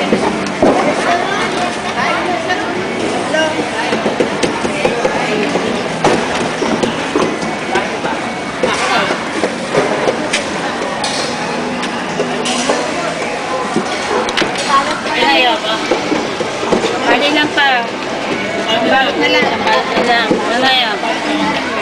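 Many voices murmur close by in a busy crowd.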